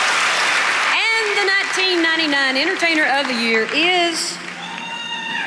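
A woman speaks into a microphone with emotion.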